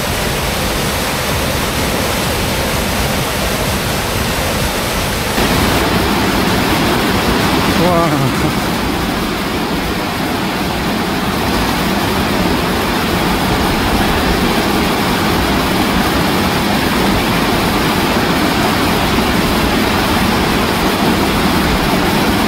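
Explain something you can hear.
Water roars as it pours down a weir into churning rapids.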